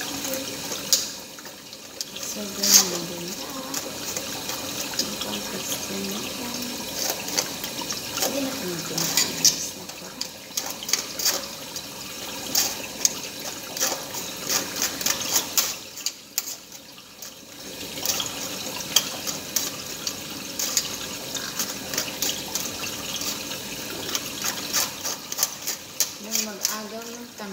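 A spoon scrapes and taps against a metal sieve.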